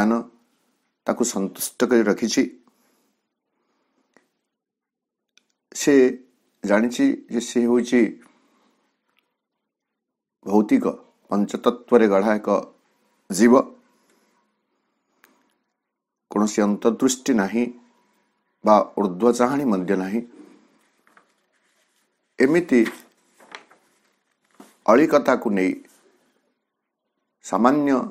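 A man speaks calmly and clearly into a microphone, pausing between phrases.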